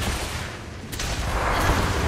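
An electric bolt zaps sharply.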